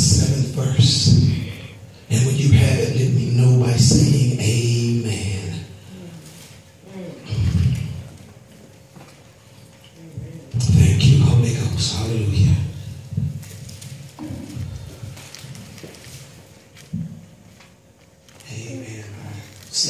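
A man speaks with feeling into a microphone, heard through loudspeakers in an echoing room.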